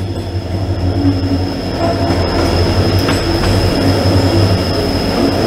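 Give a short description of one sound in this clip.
A train's rumble grows louder and echoes inside a tunnel.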